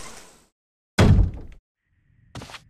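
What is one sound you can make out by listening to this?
A door shuts with a loud thud.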